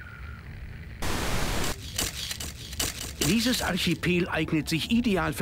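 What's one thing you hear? An older man speaks formally into microphones.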